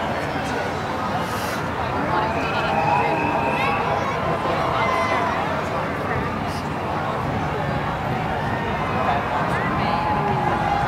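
A crowd of people chatters and calls out nearby, outdoors.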